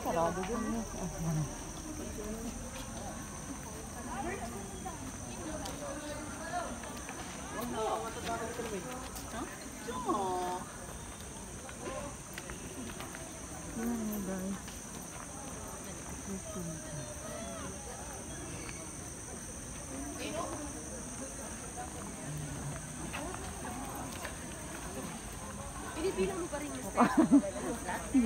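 Men and women chatter in a crowd outdoors.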